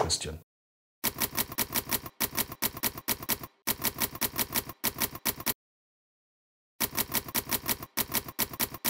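Typewriter keys clack in quick bursts.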